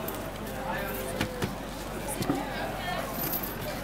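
A plastic bag crinkles and rustles as it is handled up close.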